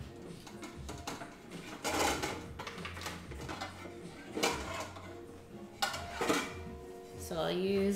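Dishes clatter.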